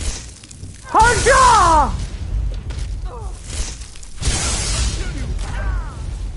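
Electric lightning crackles and hisses in bursts.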